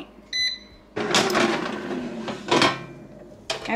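A fryer basket slides open with a scrape.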